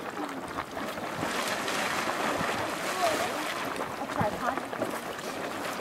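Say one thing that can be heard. A small geyser bursts up, splashing and hissing loudly.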